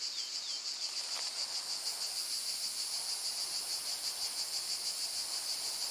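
Birds chirp in the distance.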